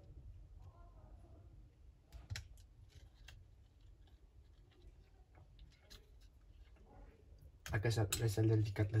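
Small plastic parts click and tap as a phone is taken apart by hand.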